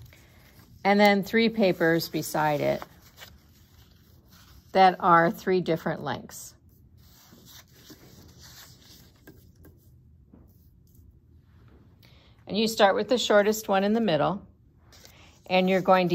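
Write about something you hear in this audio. Paper strips rustle and slide on a wooden table.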